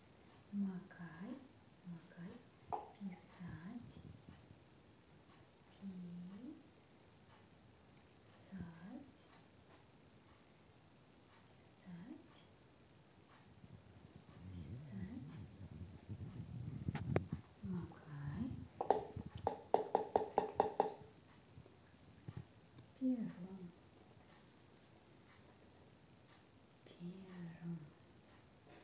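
A middle-aged woman speaks calmly close by.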